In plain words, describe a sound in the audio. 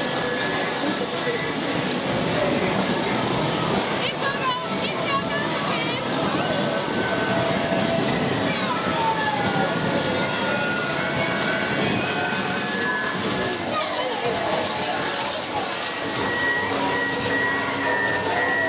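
A carousel whirs steadily as it turns.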